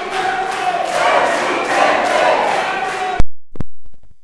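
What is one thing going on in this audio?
A crowd chatters loudly in an echoing hall.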